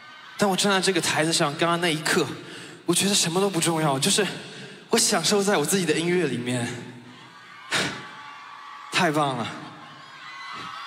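A young man sings loudly into a microphone over loudspeakers.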